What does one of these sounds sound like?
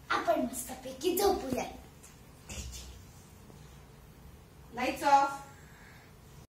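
A young girl calls out loudly nearby.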